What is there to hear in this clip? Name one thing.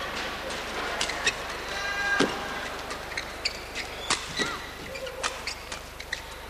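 Rackets strike a shuttlecock in a quick rally, with sharp pops echoing in a large hall.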